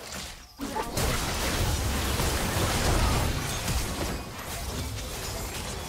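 Magic spells blast and crackle in a fast fight.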